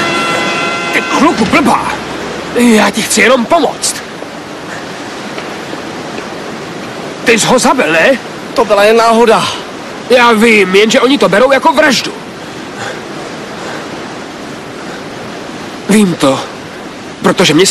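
A young man speaks loudly and urgently, close by.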